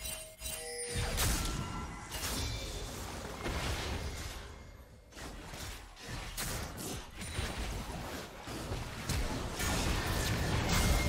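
Heavy blasts and impacts boom repeatedly in a chaotic battle.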